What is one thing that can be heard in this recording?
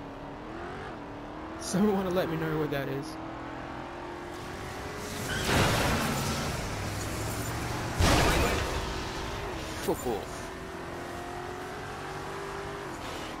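A sports car engine revs and drones.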